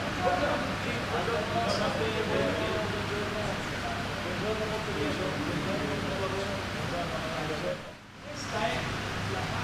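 A man speaks steadily nearby.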